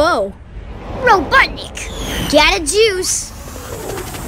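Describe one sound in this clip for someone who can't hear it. A cartoon boy's voice calls out with excitement.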